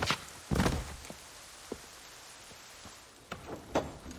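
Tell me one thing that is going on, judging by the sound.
A heavy body thuds onto a wooden floor.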